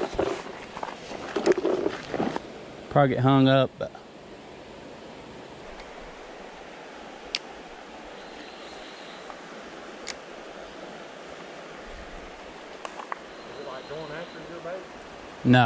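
A shallow river flows and babbles steadily.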